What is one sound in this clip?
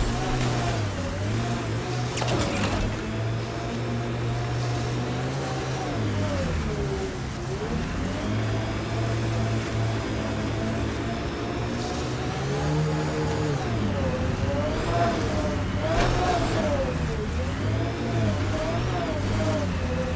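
A six-wheeled rover's engine hums and whines as it drives.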